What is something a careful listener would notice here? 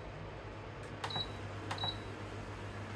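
A cooktop beeps twice as its buttons are pressed.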